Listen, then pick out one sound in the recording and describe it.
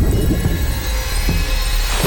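A car splashes heavily into water.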